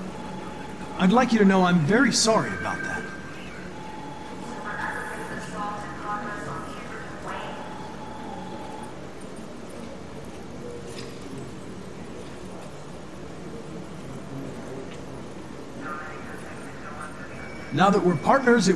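A young man speaks calmly and politely.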